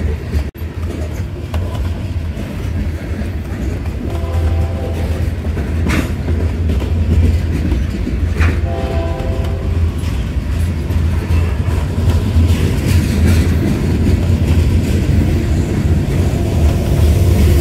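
Wheels clack rhythmically over rail joints.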